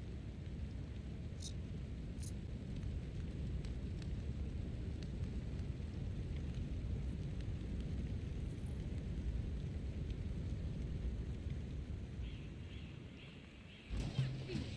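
A fire rumbles low and steadily.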